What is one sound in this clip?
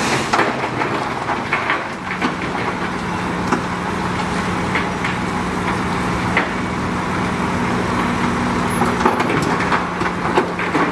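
A heavy dump truck engine rumbles as the truck drives slowly over rough ground.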